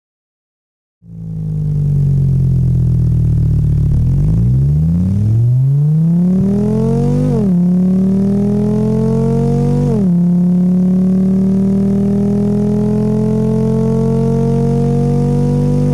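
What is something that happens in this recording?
A car engine starts, then revs up steadily with short drops in pitch between gears.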